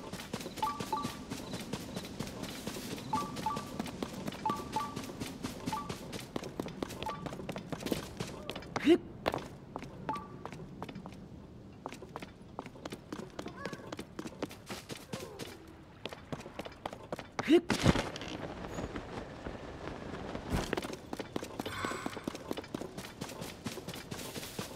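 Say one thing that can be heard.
Quick footsteps patter steadily over grass and stone.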